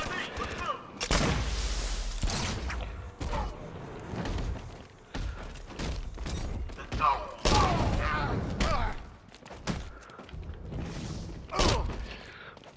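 Punches and kicks thud in a fight.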